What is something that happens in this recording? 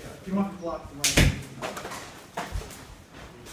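Hands and arms strike and slap against each other in quick blows.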